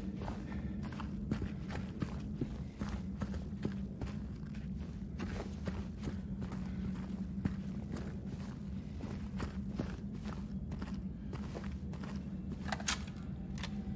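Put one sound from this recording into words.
Footsteps crunch on a gritty floor at a steady walking pace.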